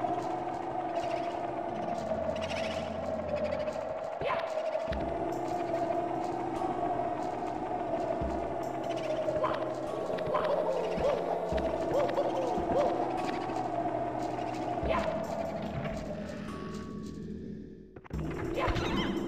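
Eerie game music plays steadily.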